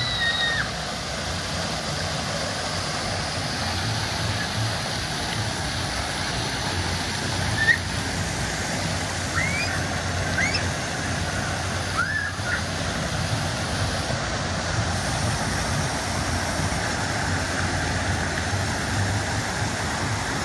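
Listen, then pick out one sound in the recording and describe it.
Water gushes and splashes steadily from fountains into a pool.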